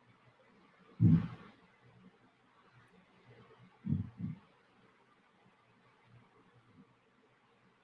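A young woman murmurs and sighs quietly, close to a microphone.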